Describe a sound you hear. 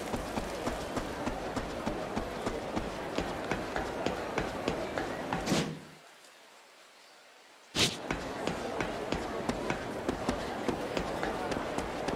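Quick footsteps run steadily over hard ground.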